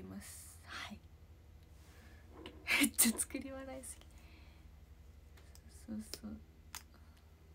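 A young woman speaks close by in a soft, cheerful voice.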